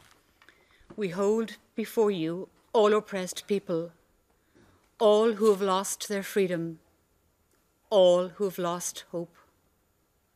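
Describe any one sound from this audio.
An older woman reads out calmly into a microphone.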